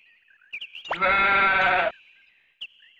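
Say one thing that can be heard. A short bright game jingle plays.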